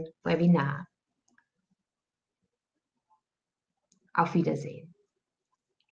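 A young woman speaks calmly through an online call, in short phrases with pauses.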